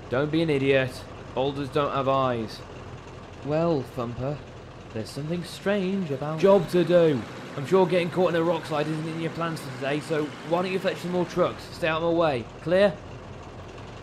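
A man speaks angrily and gruffly, close by.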